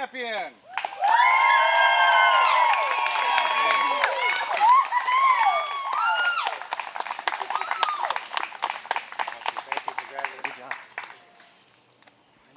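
A group of people claps their hands.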